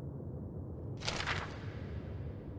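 A paper page flips over quickly.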